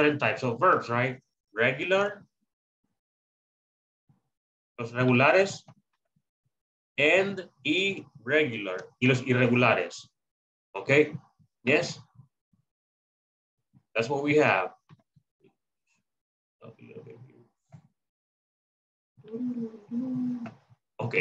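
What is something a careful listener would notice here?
A man explains calmly, heard through an online call.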